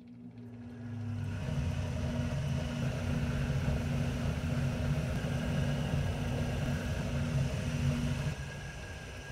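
A sanding machine motor hums steadily.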